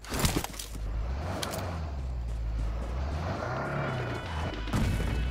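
A car engine starts and revs with a low rumble.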